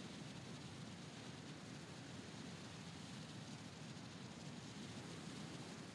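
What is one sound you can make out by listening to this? Wind rushes steadily past during a fast glide through the air.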